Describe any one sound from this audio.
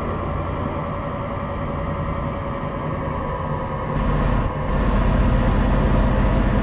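A truck engine hums steadily, growing louder and deeper partway through.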